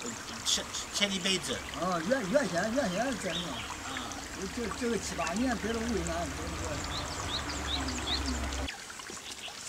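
Another elderly man answers calmly nearby.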